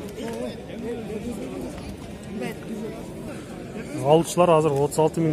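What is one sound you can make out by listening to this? Men talk over one another in a busy crowd outdoors.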